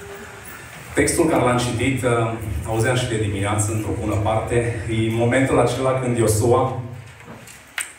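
A man speaks into a microphone, heard through a loudspeaker in an echoing room.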